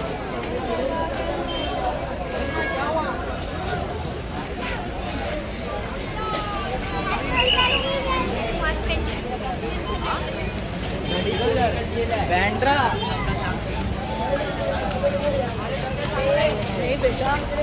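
A crowd chatters loudly outdoors.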